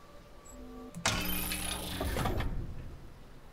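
A bright, shimmering chime rings out and fades.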